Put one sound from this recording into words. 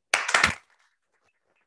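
People clap and applaud in a room.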